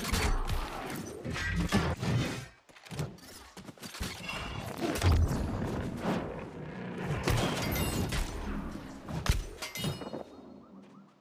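Sword blows strike and clash in a fight.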